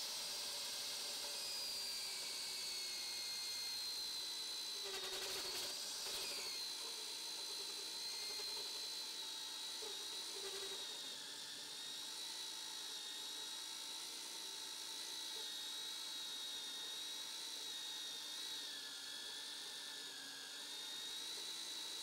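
Coolant sprays with a hiss onto the cutter.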